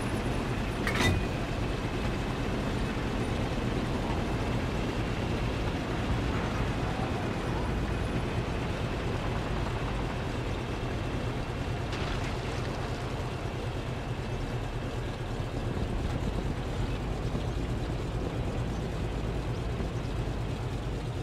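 A tank engine rumbles steadily at idle.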